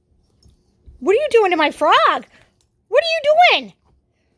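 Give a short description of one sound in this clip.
A plush toy squeaks loudly as a dog bites it.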